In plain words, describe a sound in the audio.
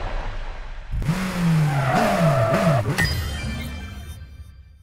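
Tyres screech on the track.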